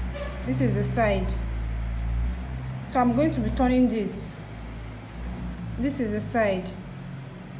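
Cloth rustles softly as hands handle it.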